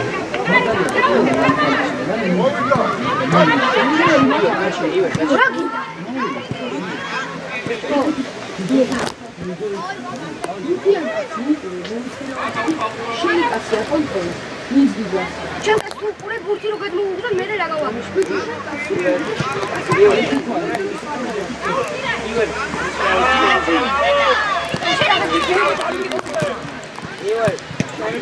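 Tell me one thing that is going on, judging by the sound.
Young players shout and call out across an open outdoor pitch.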